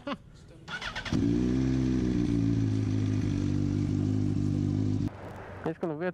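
A motorcycle engine idles steadily.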